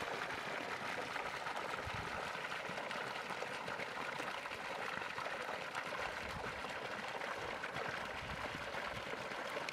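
Water sloshes in a metal bowl.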